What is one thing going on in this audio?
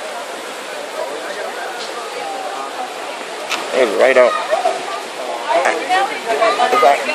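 A shallow river rushes over rocks.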